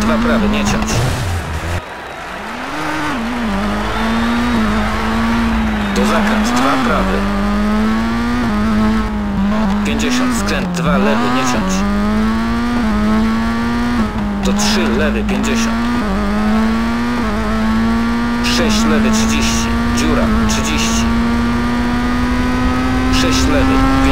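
A rally car engine revs hard, rising and falling as gears shift.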